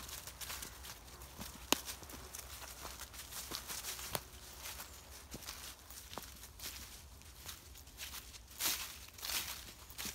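Dry leaves rustle and crunch under dogs' paws.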